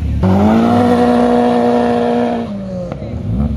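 A sports car engine revs loudly and roars close by.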